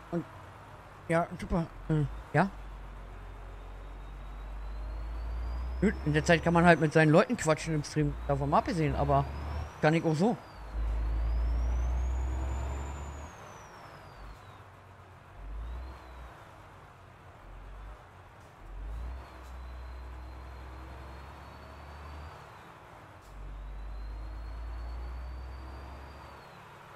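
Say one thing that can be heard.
A truck engine rumbles low, rising and falling as it revs.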